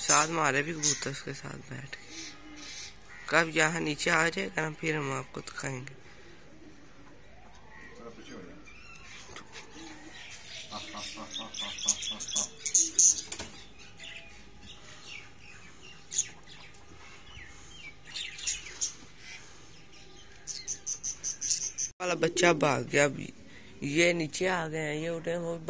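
Pigeons coo and chirp nearby.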